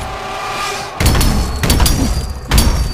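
Heavy blows crash and explode with loud bursts.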